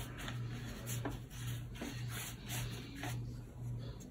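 A damp sponge brushes softly across paper.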